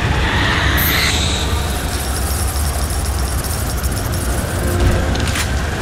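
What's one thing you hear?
Water splashes and pours steadily.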